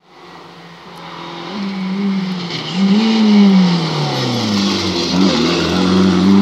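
A rally car's engine roars as the car approaches fast, revving up and down and growing louder.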